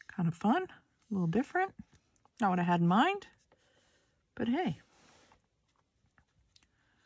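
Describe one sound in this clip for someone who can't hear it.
A paintbrush strokes softly across paper.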